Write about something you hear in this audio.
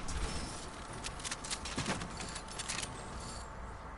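A pickaxe swings and strikes with sharp whacks.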